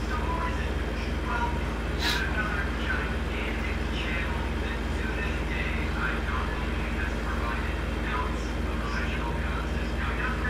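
Tyres roll along a road.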